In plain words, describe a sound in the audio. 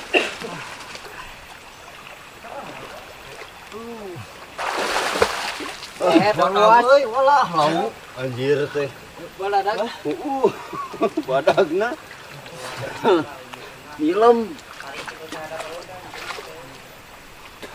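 River water flows gently.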